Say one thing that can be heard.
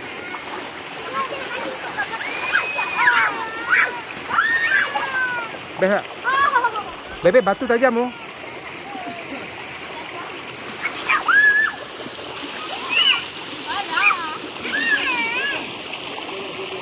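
Children shout and shriek playfully nearby.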